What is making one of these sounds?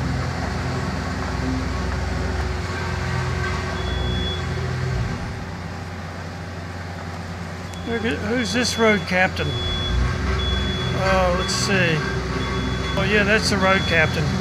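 A car engine hums as a car drives slowly past.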